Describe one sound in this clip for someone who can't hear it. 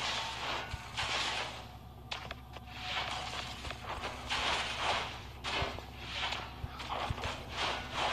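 Game sword slashes whoosh and clang repeatedly.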